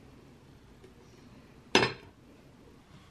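A glass lid clinks onto a plate.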